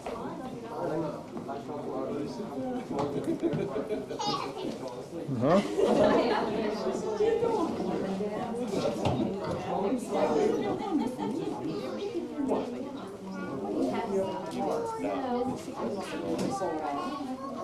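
Several adults talk and chatter nearby.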